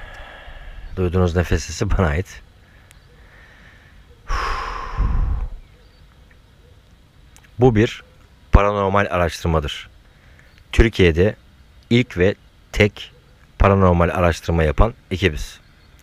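A man speaks quietly and close by, in short bursts with pauses.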